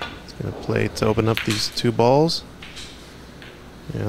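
Snooker balls knock together with a click.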